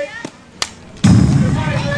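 A crowd cheers loudly in an open-air stadium.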